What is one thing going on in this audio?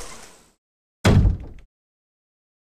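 A door shuts with a heavy thud.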